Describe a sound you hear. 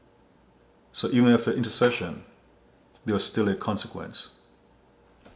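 A man speaks calmly and seriously, close to a microphone.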